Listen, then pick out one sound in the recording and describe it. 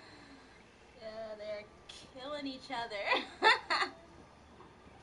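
A young woman laughs out loud.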